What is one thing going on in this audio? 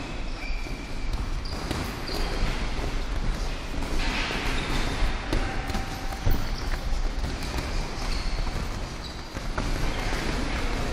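Boxing gloves thump against each other in quick sparring.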